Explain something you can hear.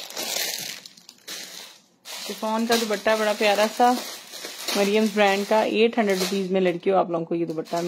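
Cloth rustles as it is unfolded and moved.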